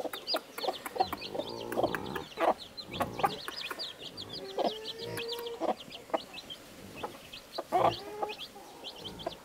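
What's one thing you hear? A hen clucks close by.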